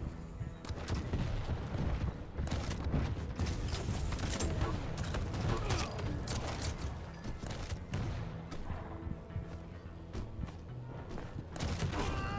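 Footsteps thud quickly in a video game.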